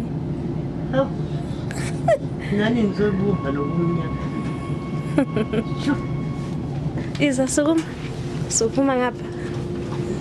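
An elderly woman speaks nearby.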